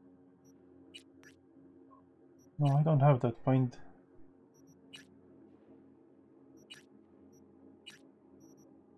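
Soft electronic clicks tick as a menu selection moves from item to item.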